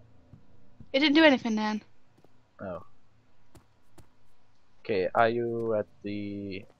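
A young man speaks with animation into a headset microphone, his voice rising and falling in pitch.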